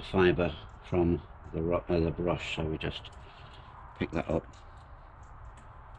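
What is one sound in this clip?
A paintbrush brushes thick paint onto a board.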